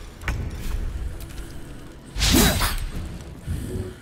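A blade strikes in a sword fight.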